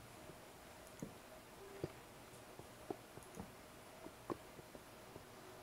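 Footsteps tread on stone in an echoing cave.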